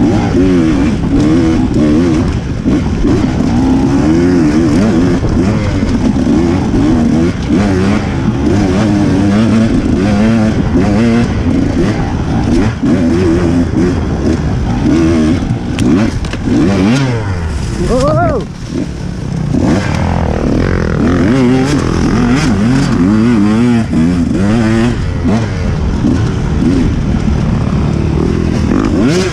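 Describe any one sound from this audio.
Tyres crunch over dry leaves and dirt.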